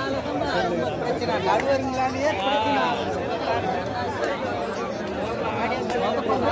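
A large outdoor crowd chatters and shouts throughout.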